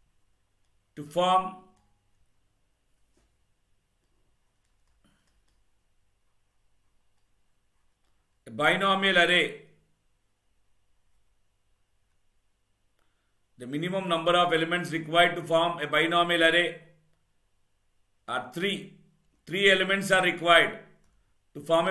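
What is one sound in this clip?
A man speaks calmly into a close microphone, in short phrases with long pauses.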